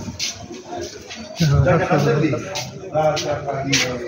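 Men talk nearby in a casual murmur.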